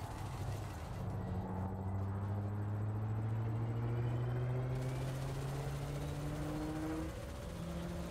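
A spaceship engine hums low and slowly rises in pitch.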